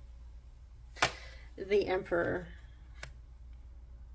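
A card is slid and tapped softly on a cloth.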